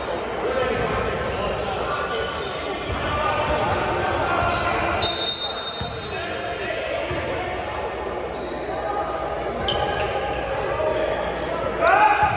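Many voices of players and onlookers talk and call out in a large echoing gym.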